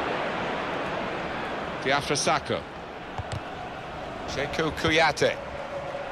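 A large crowd murmurs and cheers steadily in a big stadium.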